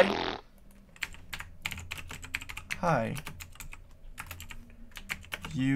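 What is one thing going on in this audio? Footsteps tap quickly on wooden boards in a video game.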